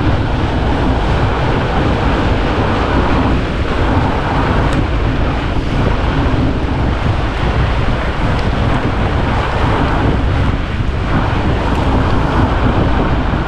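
Fat bike tyres crunch steadily over packed snow.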